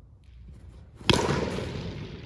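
A cricket bat cracks against a ball in a large echoing hall.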